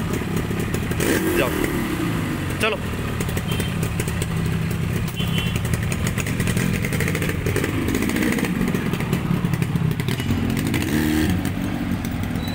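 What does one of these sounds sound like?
A Yamaha RD350 two-stroke twin motorcycle revs.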